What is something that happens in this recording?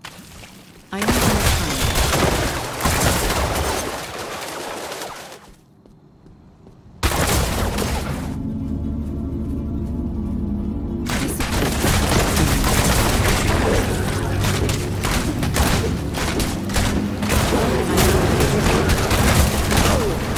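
Game spells crackle and explode during combat.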